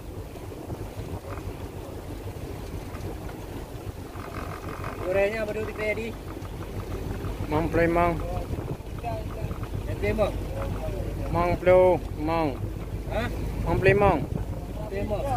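Wind rumbles across the microphone outdoors over open water.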